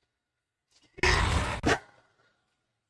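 A car slams into a body with a heavy thud.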